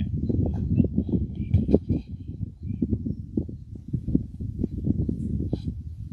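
An elderly man speaks into a microphone, heard over loudspeakers outdoors.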